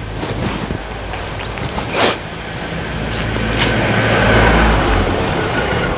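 Footsteps shuffle across dry ground.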